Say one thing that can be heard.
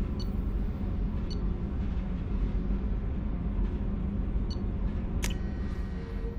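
Short electronic menu beeps sound as a selection moves.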